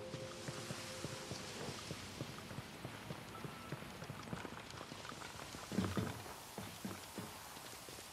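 Footsteps thud quickly on wooden boards and stairs.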